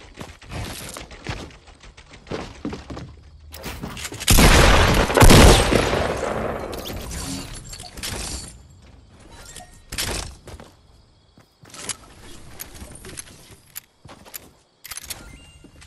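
Wooden walls clatter as they are built.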